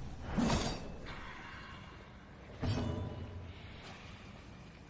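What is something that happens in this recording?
Game sound effects clash and thud in a battle.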